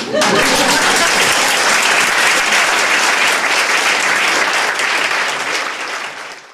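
An audience applauds loudly and steadily, then fades.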